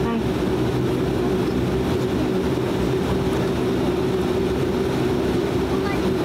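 An aircraft propeller engine drones loudly and steadily up close.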